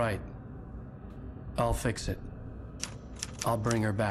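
A typewriter's keys clack.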